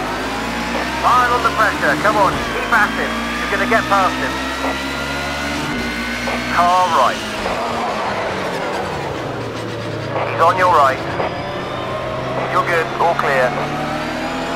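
Tyres squeal on tarmac in short bursts.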